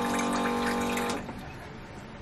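A small electric water pump whirs.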